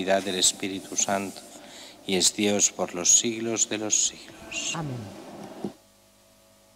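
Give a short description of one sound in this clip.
An older man speaks calmly into a microphone in a large echoing hall.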